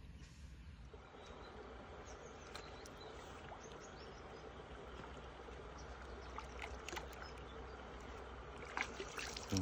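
Water splashes as a fish is netted.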